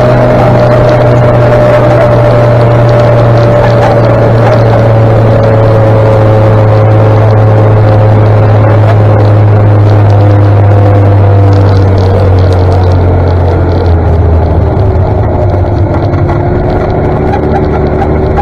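A motorcycle engine hums steadily up close, its pitch slowly dropping.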